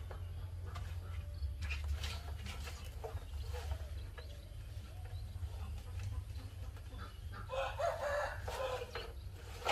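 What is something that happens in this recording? Leafy greens rustle as hands sort them in a metal basin.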